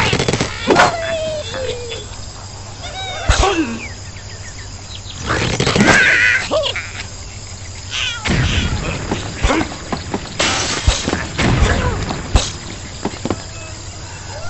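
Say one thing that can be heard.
Wooden and stone blocks crash and clatter as they break.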